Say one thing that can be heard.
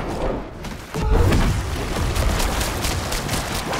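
Combat spells crash and crackle with heavy booming impacts.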